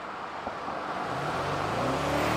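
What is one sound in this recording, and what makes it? A car engine hums and grows louder.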